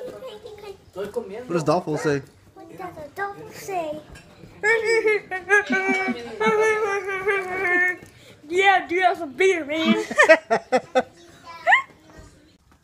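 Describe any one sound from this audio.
A young boy laughs and talks with excitement close by.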